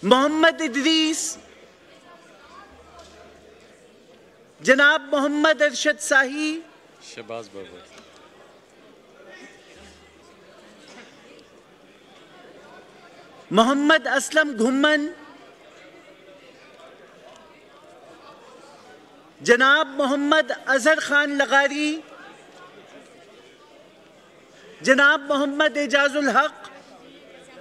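A crowd of men chants slogans loudly in bursts.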